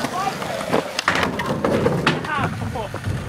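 A skater falls and slams onto concrete with a thud.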